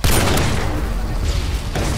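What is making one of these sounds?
A rifle fires a single loud, booming shot that echoes away.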